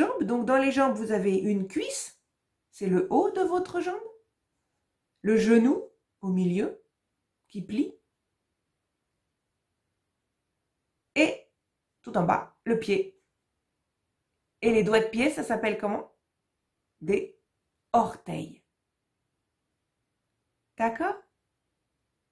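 A woman speaks calmly and clearly into a nearby microphone, pausing between phrases.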